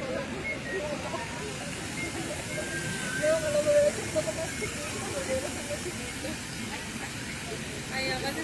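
A fountain splashes steadily nearby.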